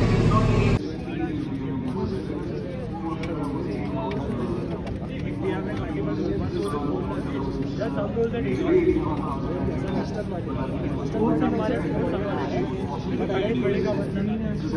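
Stiff paper cards rustle as they are shuffled by hand.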